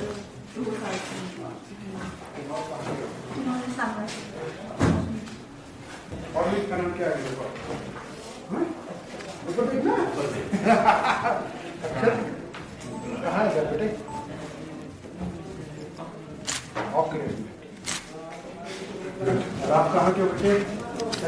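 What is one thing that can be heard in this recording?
A boy speaks quietly in reply.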